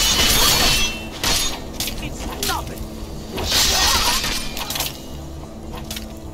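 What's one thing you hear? Blades strike with sharp metallic clangs.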